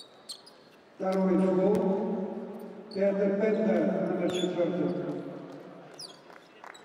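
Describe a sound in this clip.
A crowd cheers loudly in a large arena.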